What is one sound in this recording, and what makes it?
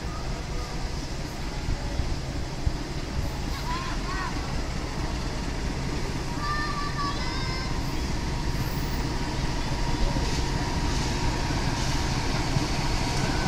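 A diesel locomotive rumbles as it approaches, growing louder.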